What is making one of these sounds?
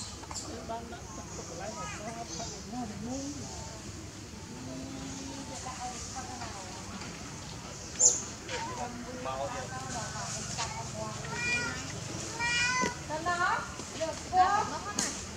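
A young monkey squeaks and chirps close by.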